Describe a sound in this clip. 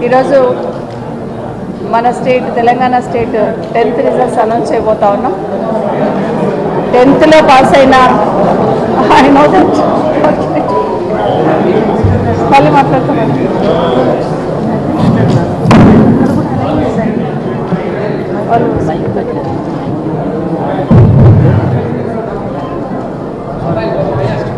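A middle-aged woman speaks calmly into microphones.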